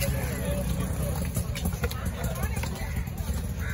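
A knife slices through fish flesh on a wooden block.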